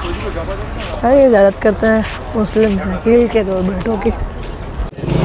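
A teenage boy talks close to a clip-on microphone.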